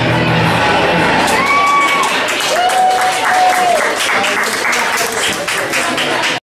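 A live band plays loud rock music on electric guitars.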